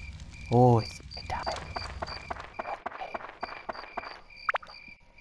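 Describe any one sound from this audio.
Footsteps patter quickly on grass.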